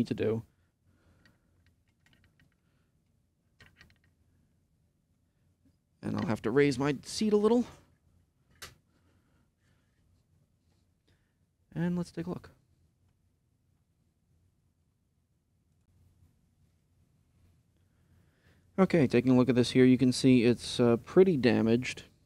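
A man speaks calmly and close up through a microphone, in short bursts.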